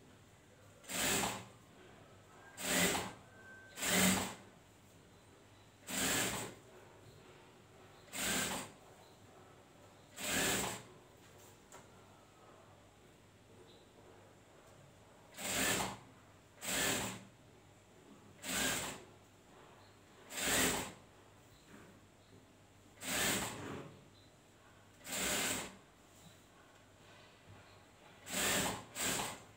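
A sewing machine stitches in short bursts.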